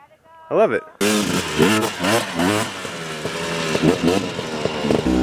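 A motorcycle engine revs loudly close by.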